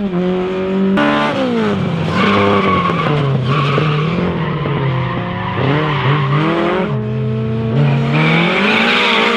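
A second car's engine revs and roars through its gears.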